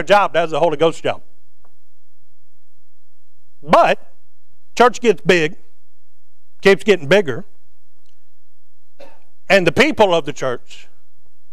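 A man preaches through a microphone in short, emphatic bursts with pauses between them.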